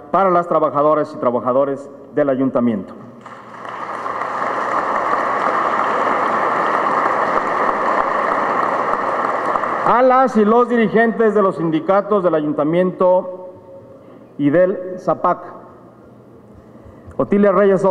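A middle-aged man speaks formally into a microphone, heard through a loudspeaker in a large room.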